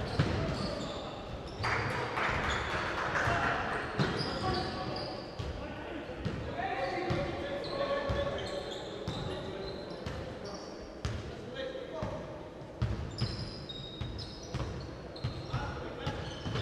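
A basketball bounces on the floor.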